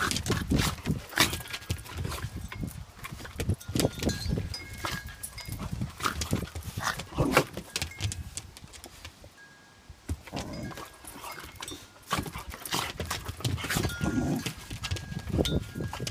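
Dogs growl and snarl as they play-fight.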